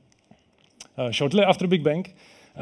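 A man speaks calmly through a headset microphone in a large hall.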